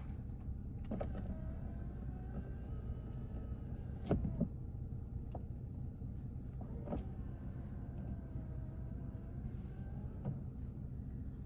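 An electric rear window sunshade motor whirs inside a car.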